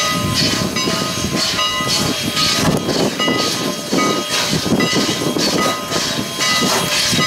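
Steel wheels clank and squeal on rails.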